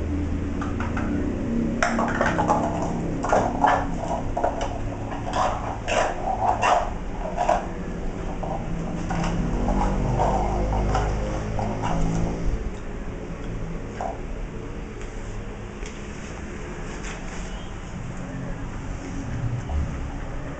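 An electric fan hums steadily.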